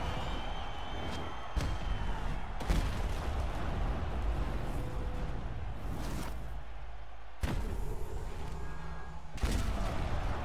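Punches thud heavily against a body.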